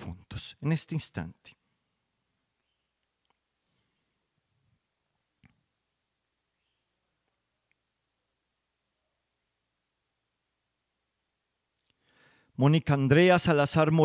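An older man speaks slowly into a microphone, with long pauses.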